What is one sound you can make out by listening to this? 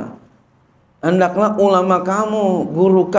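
A man chants through a microphone in a drawn-out, melodic voice.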